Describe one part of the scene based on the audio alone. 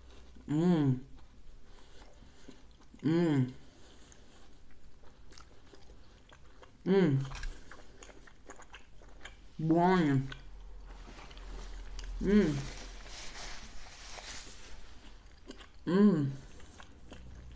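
A woman makes short humming sounds of pleasure between bites.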